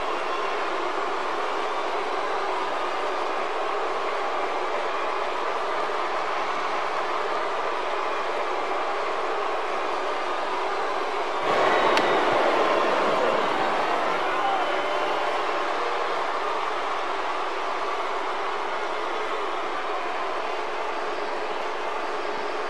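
A large crowd cheers and roars steadily in a big arena, swelling loudly for a few seconds midway.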